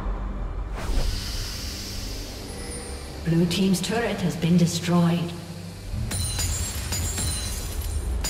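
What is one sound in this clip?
Fantasy battle sound effects of spells and weapons clash and crackle.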